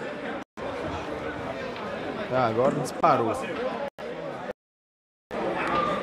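Billiard balls click together on a table.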